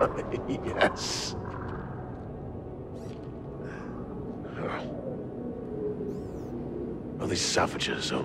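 A man speaks boldly in a deep, gruff voice.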